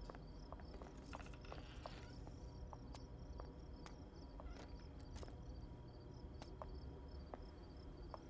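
Footsteps walk along a pavement outdoors.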